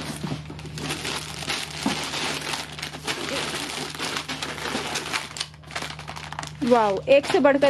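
Plastic wrapping crinkles and rustles as packets are handled.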